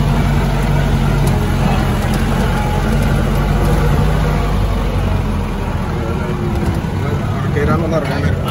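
Tyres crunch and bump over a rough dirt track.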